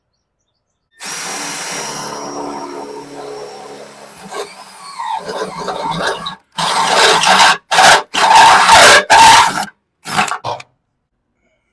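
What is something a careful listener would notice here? A cordless drill whirs and bores into metal in short bursts.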